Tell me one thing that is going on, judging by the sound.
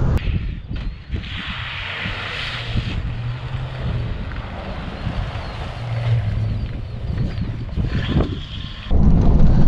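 A car drives past on a road outdoors.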